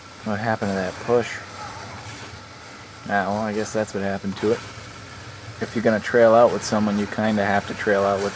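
A video game weapon fires a crackling, hissing stream.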